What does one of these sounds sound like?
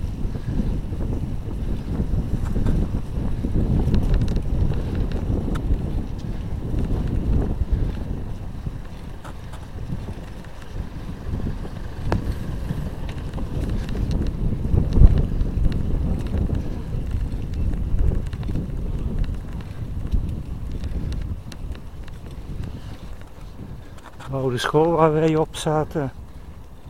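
Wind rumbles and buffets as a rider moves along outdoors.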